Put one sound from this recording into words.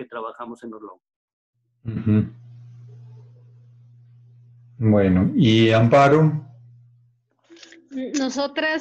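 A man speaks through an online call, with pauses.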